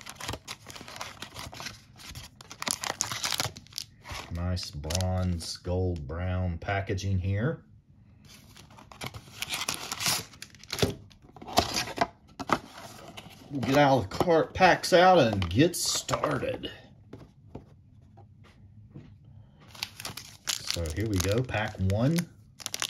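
Foil card packs rustle and crinkle between fingers.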